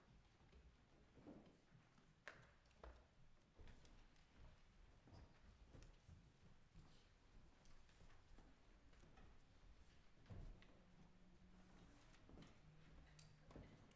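A congregation murmurs and shuffles quietly in a large room.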